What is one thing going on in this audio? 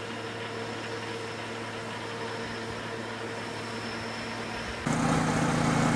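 A harvesting machine's engine drones steadily.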